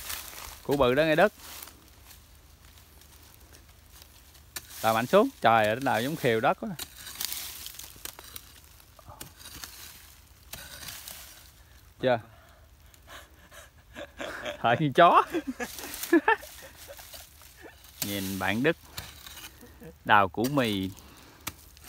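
A hoe chops into dry earth and leaves.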